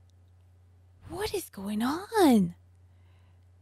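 A woman speaks expressively into a close microphone, her voice gliding up and down.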